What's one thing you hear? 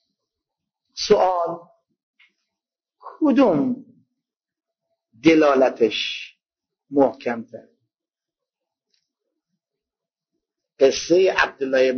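An elderly man preaches with emphasis through a microphone, in short bursts separated by pauses.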